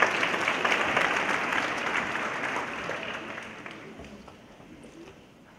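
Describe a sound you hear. An audience applauds in a large echoing hall and the clapping fades away.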